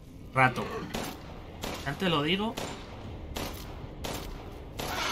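A gun fires loud single shots.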